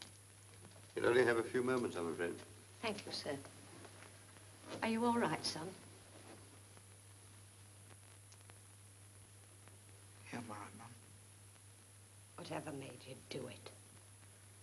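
A middle-aged woman speaks in a worried tone.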